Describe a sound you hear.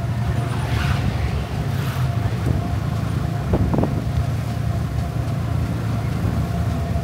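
A small motor vehicle's engine rumbles steadily as it drives along.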